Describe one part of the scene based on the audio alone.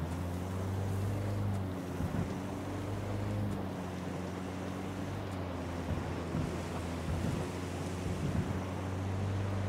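A van engine hums steadily at low speed.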